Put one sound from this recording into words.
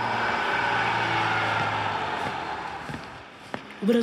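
A bus engine hums at idle.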